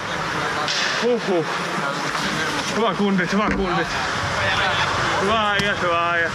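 Young men shout and cheer nearby in an echoing rink.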